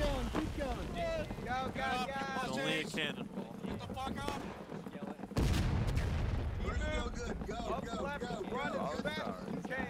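Boots thud on a dirt road as soldiers run past.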